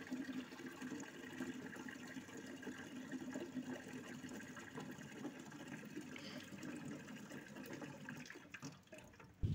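Water pours from a tap into a metal pot.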